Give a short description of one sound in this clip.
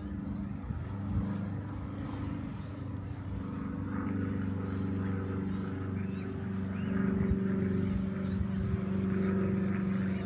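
A boat engine hums steadily as a boat chugs along the river.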